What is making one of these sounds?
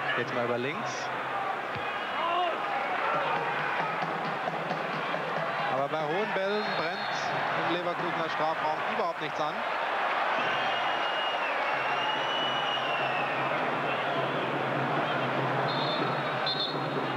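A large stadium crowd roars and chants steadily in the distance.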